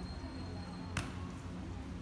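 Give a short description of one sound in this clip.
A hand strikes a volleyball outdoors with a sharp slap.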